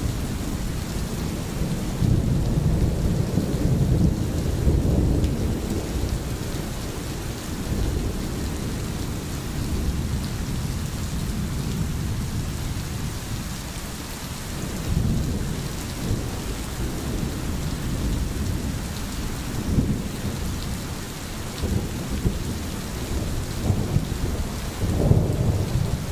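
A stream gurgles and rushes over stones.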